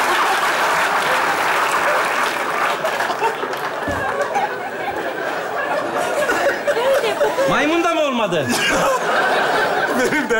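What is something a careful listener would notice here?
A man laughs heartily.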